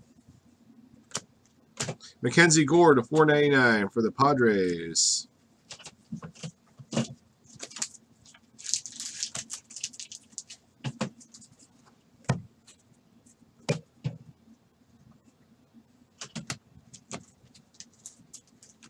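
Trading cards flick and slap against each other as they are sorted by hand.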